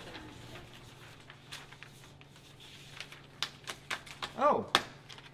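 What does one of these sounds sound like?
Paper rustles and crinkles as sheets are handled.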